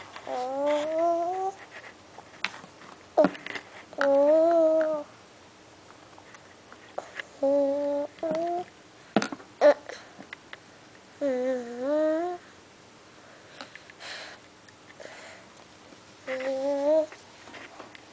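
A toddler makes short, high-pitched humming sounds up close.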